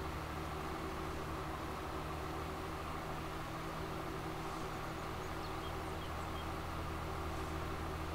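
A tractor engine hums steadily as it drives along.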